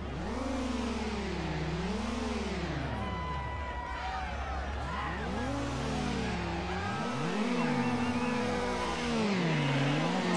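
Car engines rev up and down while idling.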